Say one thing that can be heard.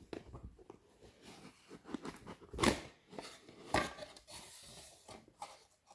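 A cardboard box lid flaps open with rustling and knocks.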